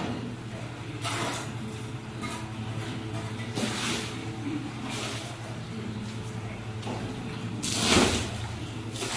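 Footsteps crunch and scrape on wet, gritty mortar.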